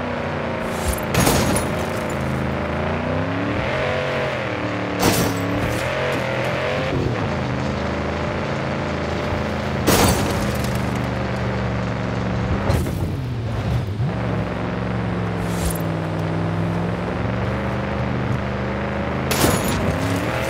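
Sharp thumps sound as a car bumps over dunes.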